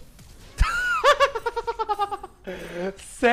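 A young man laughs loudly and close to a microphone.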